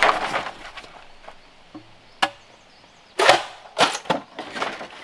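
A blade chops into bamboo with sharp knocks.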